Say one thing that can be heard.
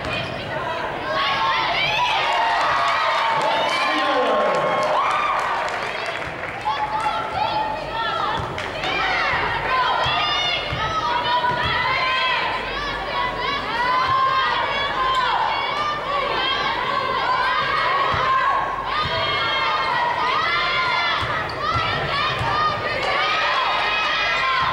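Basketball sneakers squeak sharply on a hardwood court in a large echoing gym.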